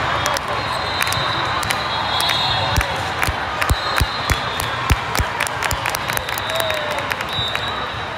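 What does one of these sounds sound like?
A volleyball thuds against players' arms.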